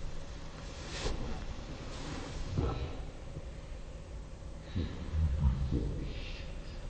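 Bodies shift and thump softly against a mat.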